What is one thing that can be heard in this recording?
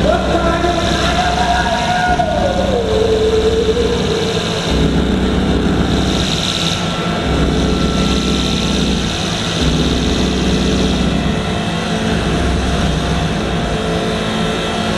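Loud electronic music plays through a PA in a large hall.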